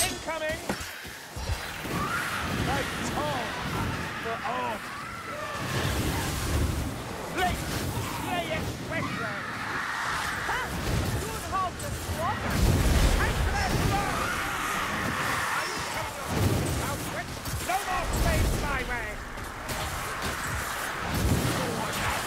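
Weapons strike and thud repeatedly in a hectic fight.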